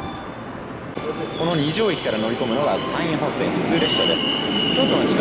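A train pulls into the station with squealing brakes.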